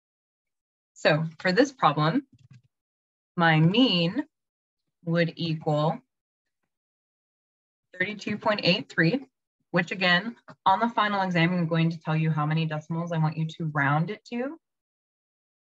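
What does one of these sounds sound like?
A woman explains calmly over an online call, in short bursts with pauses.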